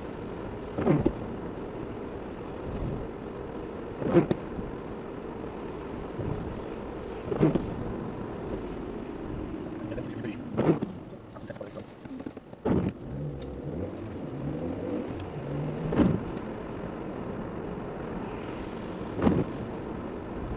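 Windscreen wipers thump across the glass at regular intervals.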